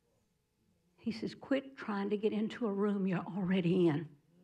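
An older woman speaks with animation into a microphone.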